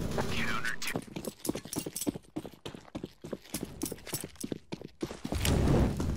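Quick footsteps run on a hard stone floor.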